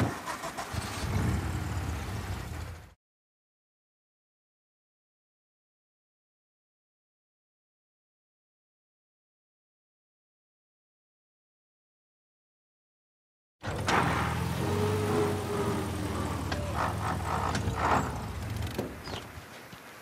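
An old car engine rumbles steadily.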